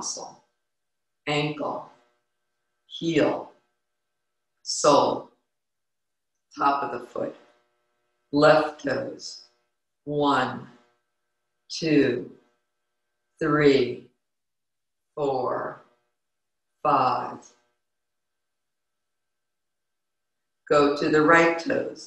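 A woman reads aloud calmly into a close microphone, in short phrases with pauses.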